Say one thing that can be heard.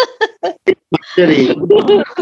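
A middle-aged woman laughs over an online call.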